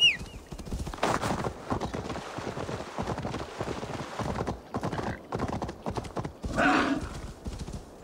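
Heavy hooves pound and crunch over snow.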